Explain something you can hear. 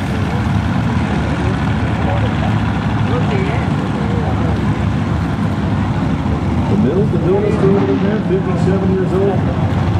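A racing engine rumbles and roars in the distance.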